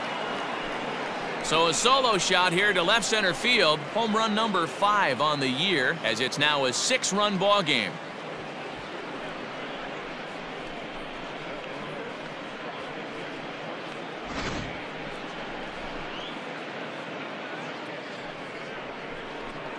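A large crowd cheers and roars in a big stadium.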